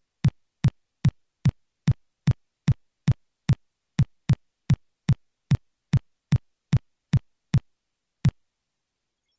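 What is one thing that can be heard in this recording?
Footsteps tap at an even pace.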